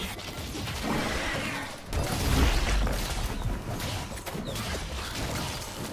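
Magic blasts whoosh and crackle in a fantasy battle.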